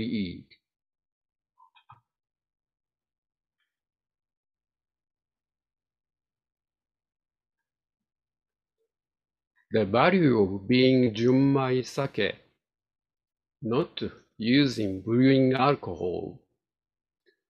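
A middle-aged man speaks calmly through an online call, with long pauses.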